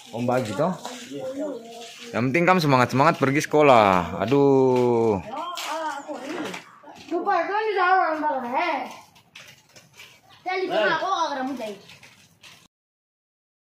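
Young boys talk and call out with animation close by.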